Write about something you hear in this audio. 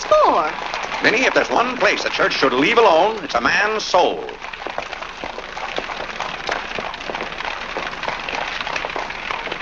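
Footsteps tap on pavement as a crowd walks.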